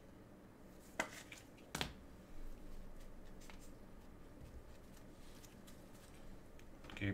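Gloved hands handle and shuffle trading cards with soft rustles and clicks.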